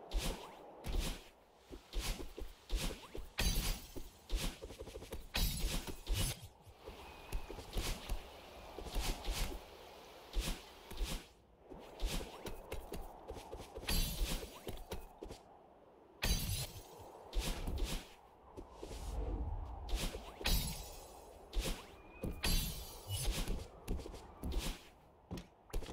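Quick whooshing game sound effects burst out again and again.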